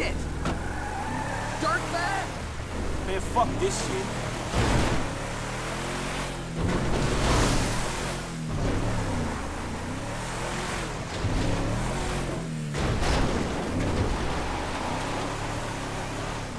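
A pickup truck engine revs and roars, rising and falling in pitch.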